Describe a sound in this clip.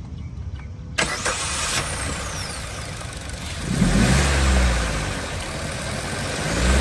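A car engine idles close by with a steady rumbling hum.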